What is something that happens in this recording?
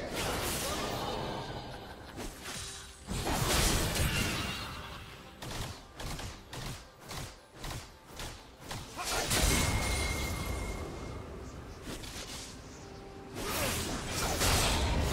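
Magic blasts and sword hits crackle and thud in a fast battle.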